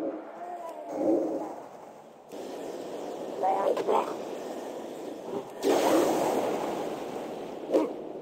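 Magical spell effects whoosh and shimmer in bursts.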